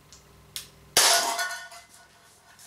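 An air pistol fires with a sharp, loud crack.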